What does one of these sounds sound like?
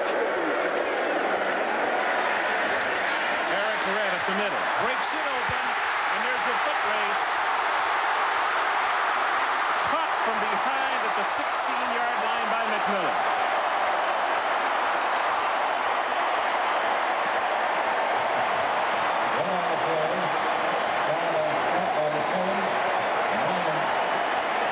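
A large stadium crowd cheers and roars.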